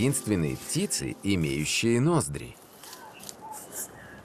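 A bird's beak pokes and rustles in dry leaf litter.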